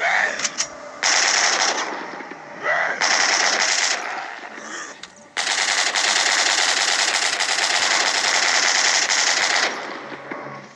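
A heavy machine gun fires in long rapid bursts.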